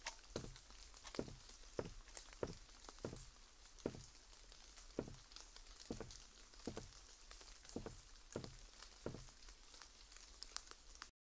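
Slow footsteps thud steadily on a floor indoors.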